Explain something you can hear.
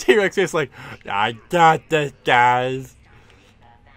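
A man laughs loudly in a gravelly cartoon voice.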